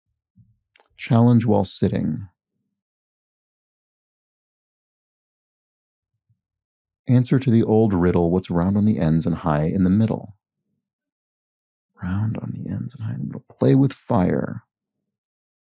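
A young man talks calmly and thoughtfully into a close microphone, in short bursts with pauses.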